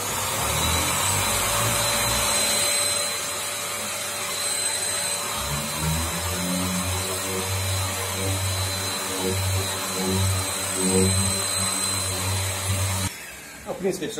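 An electric orbital sander whirs steadily against a metal panel.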